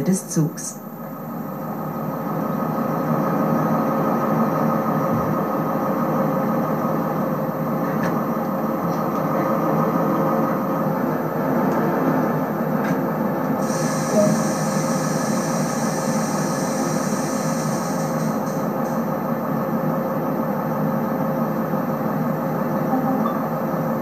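A diesel train engine hums steadily at idle.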